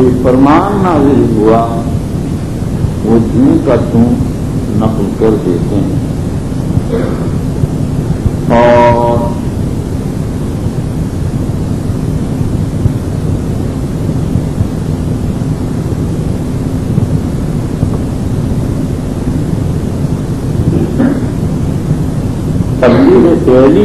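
An elderly man speaks slowly through a microphone, in a reverberant hall.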